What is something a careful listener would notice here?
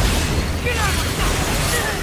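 A fiery blast bursts with crackling sparks.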